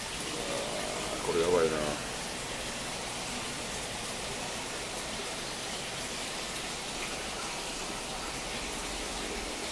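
An aquarium filter hums softly.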